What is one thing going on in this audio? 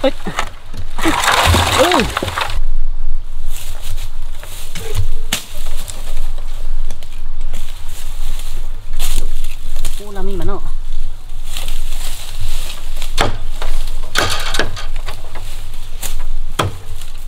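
Leaves and branches rustle and crackle.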